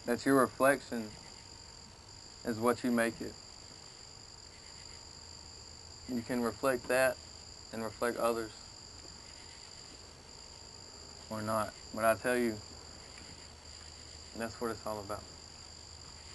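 A young man reads aloud in short bursts, with pauses between.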